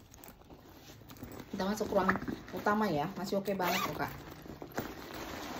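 Fabric rustles as a bag is handled.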